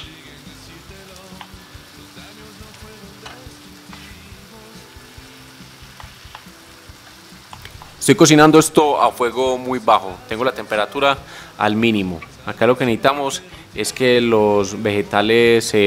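A wooden spoon scrapes and stirs in a frying pan.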